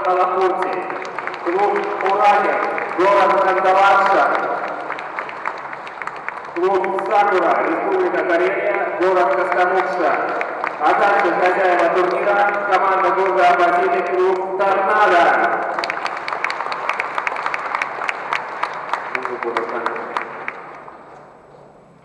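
A crowd claps in a large echoing hall.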